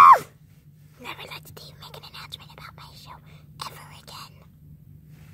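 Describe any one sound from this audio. A parrot chatters softly.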